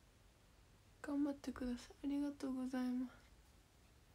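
A young girl speaks briefly, close to the microphone.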